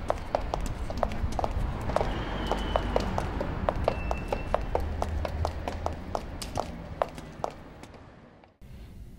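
Footsteps tap steadily on a paved street.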